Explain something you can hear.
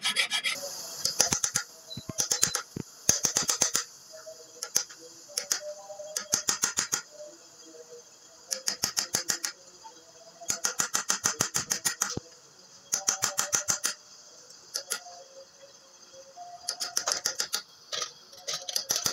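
A hand tool scrapes and chatters against metal in short bursts.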